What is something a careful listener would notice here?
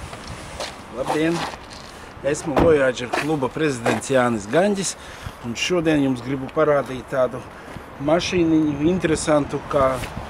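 A middle-aged man speaks with animation close by, outdoors.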